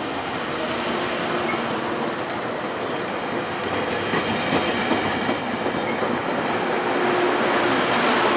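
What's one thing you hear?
Train wheels squeal high and shrill on the rails.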